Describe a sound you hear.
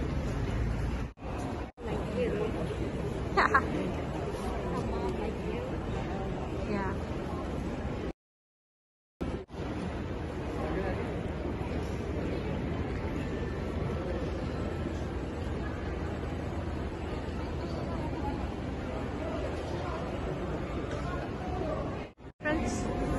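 A busy crowd murmurs in a large echoing hall.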